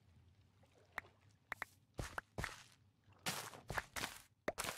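Crops rustle and snap as they are broken.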